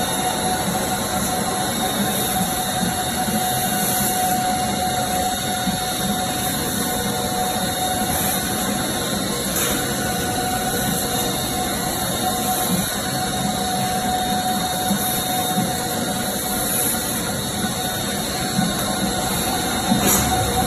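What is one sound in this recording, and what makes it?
A conveyor machine hums and rattles steadily.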